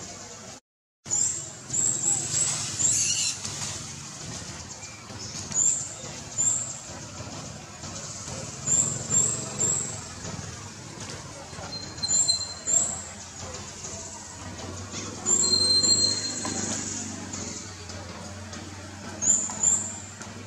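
A baby monkey scampers over dry leaves with soft rustling steps.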